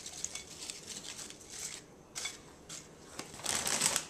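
Potato chips clatter and rustle onto a plate.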